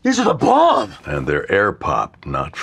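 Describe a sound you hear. An older man speaks calmly and drily.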